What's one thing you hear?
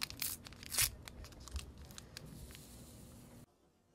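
Powder pours from a packet into a cup of liquid.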